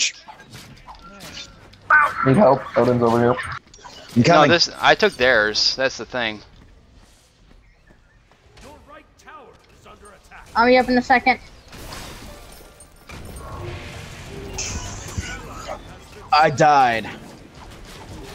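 Magic blasts and blows clash in a fight.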